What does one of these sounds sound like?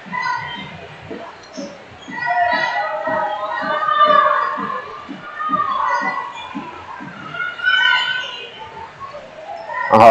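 A basketball bounces in a steady rhythm.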